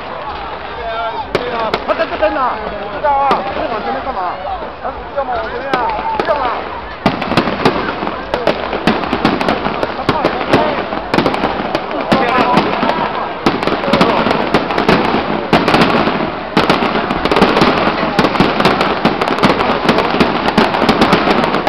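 A crowd chatters and cheers loudly outdoors.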